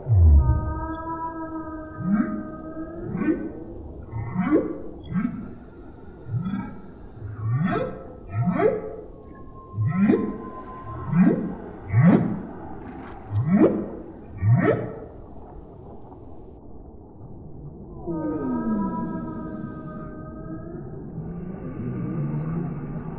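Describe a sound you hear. Whales call with long moans and rising whoops.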